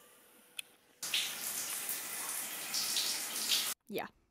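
Water streams and splashes onto a hard floor.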